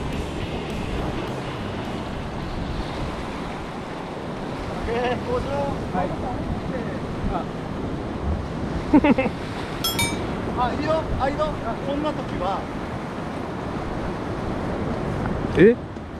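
Waves wash steadily against rocks outdoors.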